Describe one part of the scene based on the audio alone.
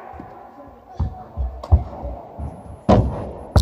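Quick footsteps thud on a hard floor in a large echoing hall.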